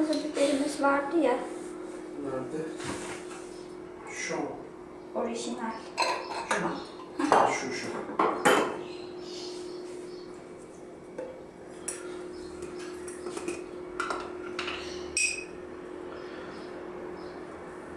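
A glass jar clinks.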